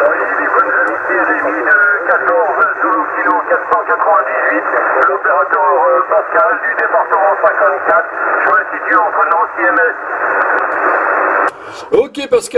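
A man's voice comes through a radio loudspeaker, narrow and crackly.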